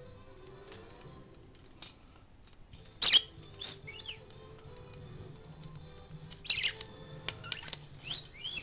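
Budgies chirp and squawk in sharp bursts close by.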